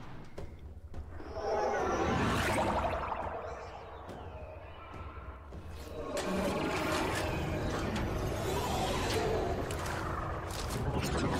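A spaceship engine roars as a ship flies past.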